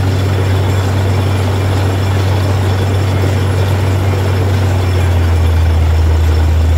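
A drilling rig's diesel engine drones loudly and steadily.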